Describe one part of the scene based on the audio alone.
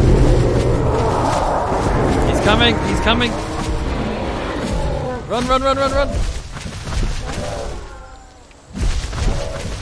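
A large creature's heavy footsteps thud on the ground.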